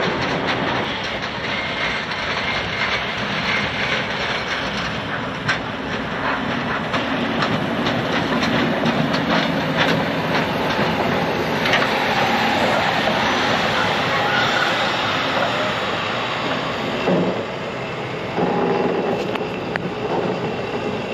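A steam locomotive chugs and rumbles closer, then passes by and moves away.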